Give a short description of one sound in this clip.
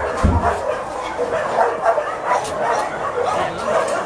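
A metal crate door rattles open.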